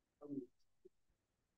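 A woman speaks a brief word over an online call.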